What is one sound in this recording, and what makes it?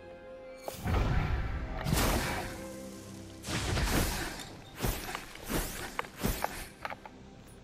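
A magic blast whooshes and booms loudly several times.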